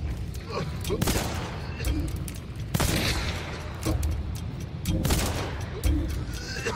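Gunshots bang loudly with a short echo.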